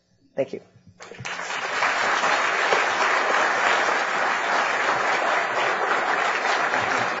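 An audience applauds loudly.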